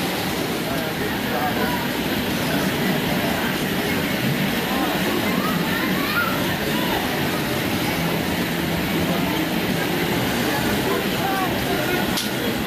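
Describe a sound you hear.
A children's carousel rumbles steadily as it turns.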